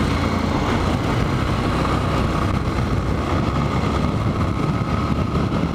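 A motorcycle engine hums steadily while riding fast.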